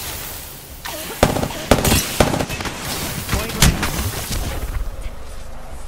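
Gunshots and loud blasts ring out in a video game.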